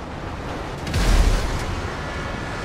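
A train crashes into a car with a loud bang.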